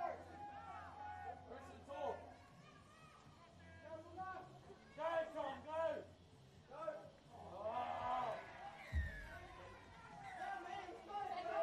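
Men shout and call out loudly outdoors.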